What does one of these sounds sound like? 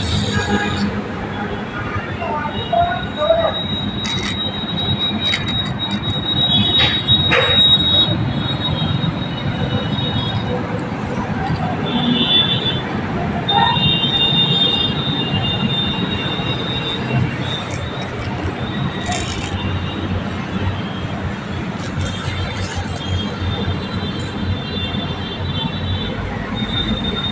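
Plastic toys tap and clatter on a hard floor.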